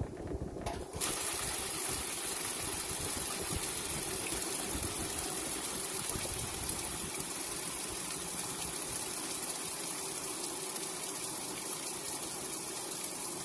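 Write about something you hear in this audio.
Water gushes and splashes into a washing machine drum.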